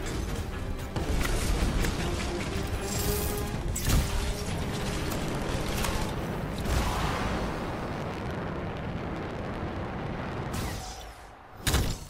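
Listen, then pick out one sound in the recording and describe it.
Gunfire and explosions boom and crackle in a loud battle.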